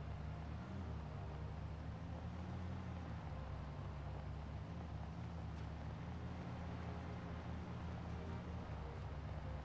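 A vehicle engine rumbles steadily while driving over rough ground.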